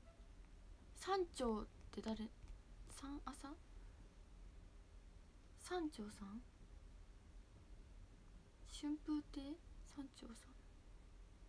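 A young woman speaks softly and close to a microphone, in short bursts with pauses.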